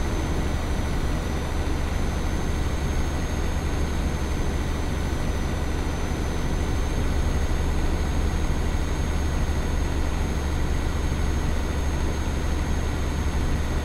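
Tyres roll on a highway with a steady rumble.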